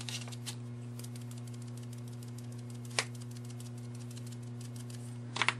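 A sponge dabs lightly and quickly against a glass jar.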